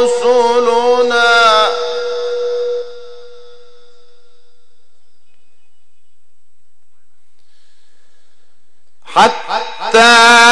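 A man chants in a long, melodic voice through a microphone, with echo trailing after each phrase.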